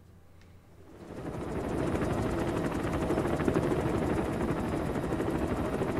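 A helicopter's engine and rotor roar steadily from inside the cabin.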